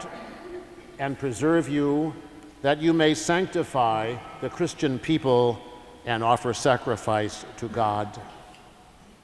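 An elderly man chants slowly in an echoing hall.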